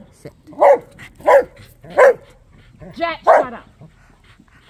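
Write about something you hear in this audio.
A dog yelps close by in short bursts.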